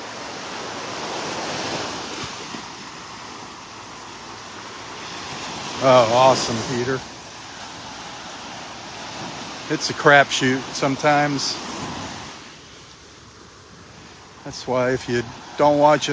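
Gentle waves wash steadily onto the shore.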